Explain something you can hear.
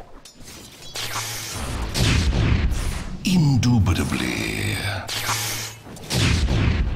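Magic spells and weapon blows clash in a fast fight.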